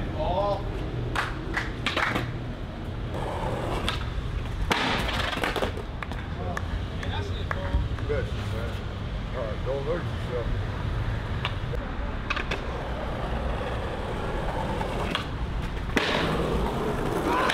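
Skateboard wheels roll and clack on concrete.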